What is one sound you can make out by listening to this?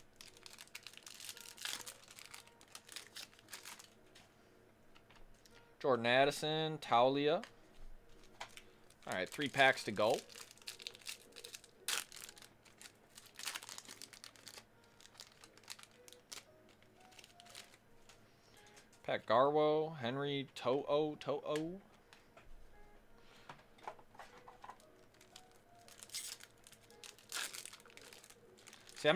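A foil card pack crinkles and rustles as hands tear it open.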